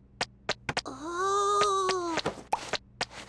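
A cartoon chick squeals in a high, wavering voice.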